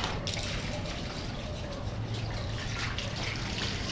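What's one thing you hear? Water splashes as it is poured from a scoop onto a hard surface.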